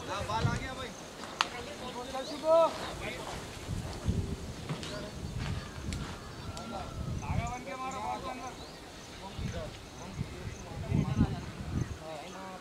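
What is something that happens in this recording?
Men call out across an open field.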